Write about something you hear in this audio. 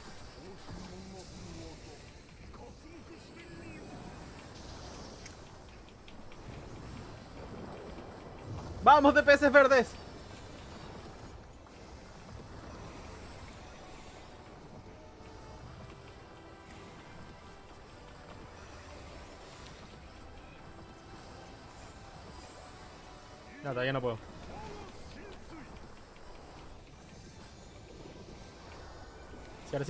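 Magic spells crackle and burst in a game battle.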